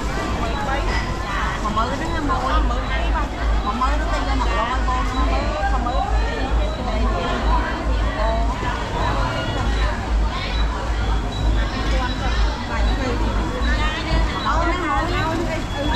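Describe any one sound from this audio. Several women chatter nearby.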